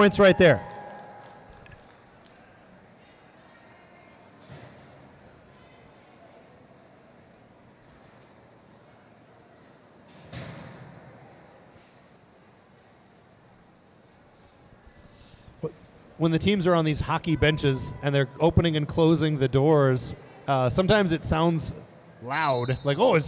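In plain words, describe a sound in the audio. Roller skates roll across a hard floor in a large echoing hall.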